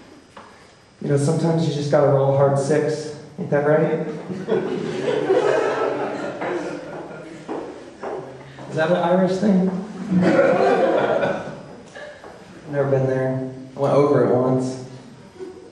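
A man sings into a microphone in a room with a slight echo.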